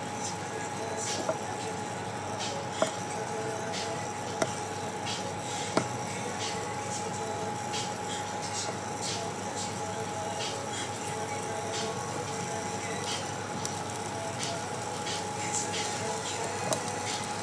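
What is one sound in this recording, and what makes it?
Potato sticks tap softly as they are set down in a pan.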